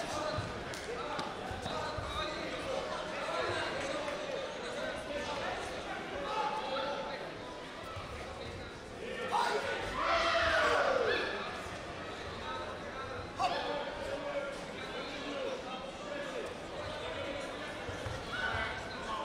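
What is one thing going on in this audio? Feet thud and shuffle on a padded mat.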